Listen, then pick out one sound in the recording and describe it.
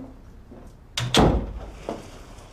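A door shuts with a thud.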